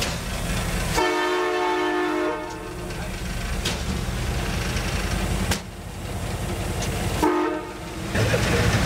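A locomotive horn sounds loudly.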